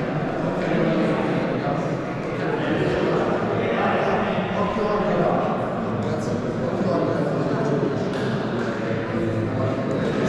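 A team of young men talks over one another in a huddle, echoing in a large hall.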